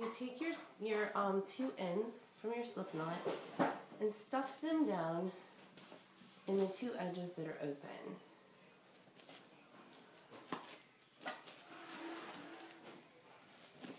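Fabric rustles as it is folded and tied.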